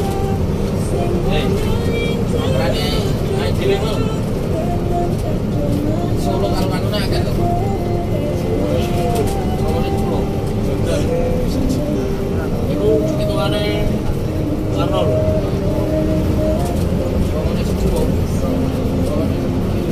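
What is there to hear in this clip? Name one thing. A diesel bus engine drones under load, heard from inside the cab while cruising on a highway.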